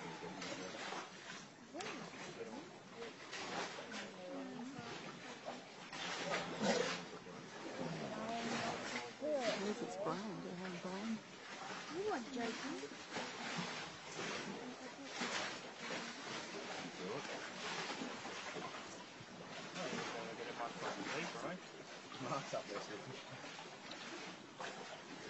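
Hands rustle and fumble with something close by.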